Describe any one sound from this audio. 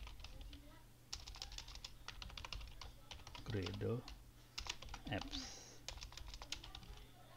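Keys clatter quickly on a computer keyboard.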